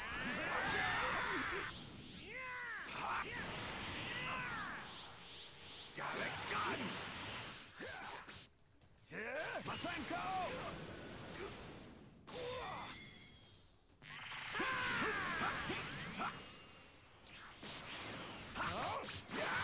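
Loud explosions crackle and roar.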